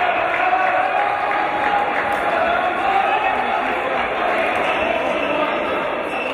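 Players' shoes squeak on the court.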